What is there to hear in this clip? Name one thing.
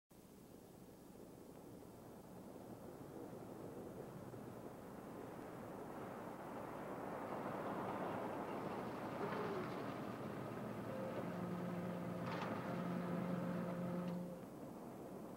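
A car engine roars as the car approaches, growing louder.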